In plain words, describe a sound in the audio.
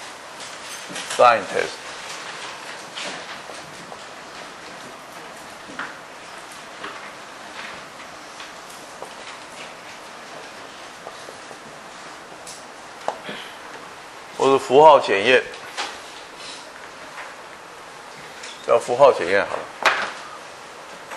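A man speaks calmly in short bursts.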